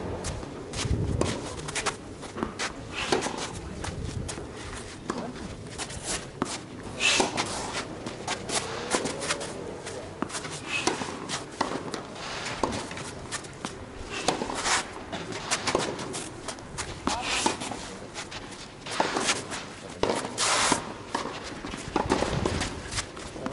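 Shoes scuff and squeak on a hard court as a player runs.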